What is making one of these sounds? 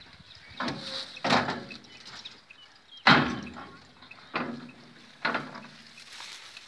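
Cattle moo loudly close by.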